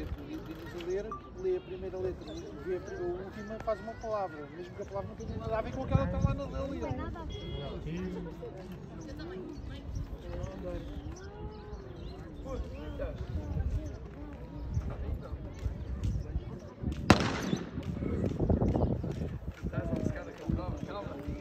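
Children chatter and call out nearby, outdoors.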